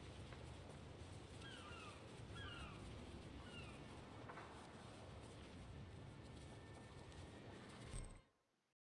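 Wind rushes steadily.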